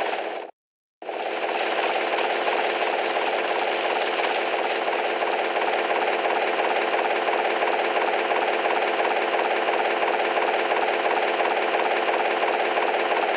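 Helicopter rotor blades chop steadily and rapidly.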